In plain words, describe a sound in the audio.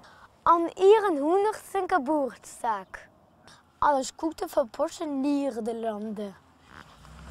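A young boy speaks excitedly and close by.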